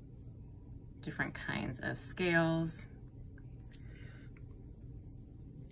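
A marker taps lightly on soft clay.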